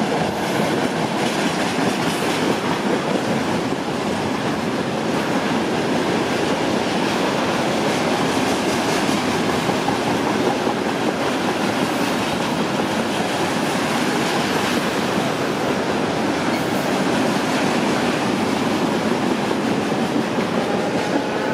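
An electric commuter train approaches and passes.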